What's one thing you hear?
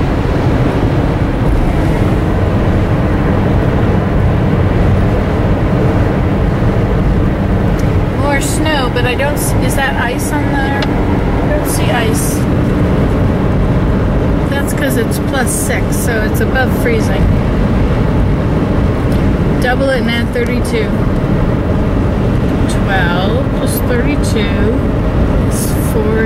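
A car engine and tyres rumble steadily on a highway, heard from inside the car.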